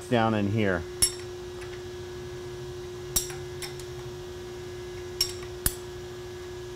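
A wrench clicks and clinks against metal bolts.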